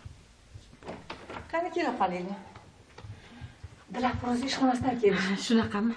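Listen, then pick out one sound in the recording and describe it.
A middle-aged woman speaks, close by.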